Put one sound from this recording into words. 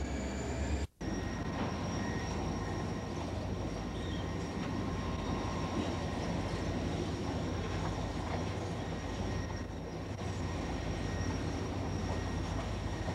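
A diesel locomotive rumbles steadily as it rolls slowly closer.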